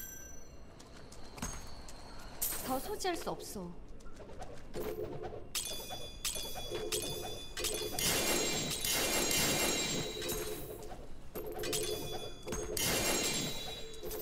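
Items drop with chiming sounds in a game.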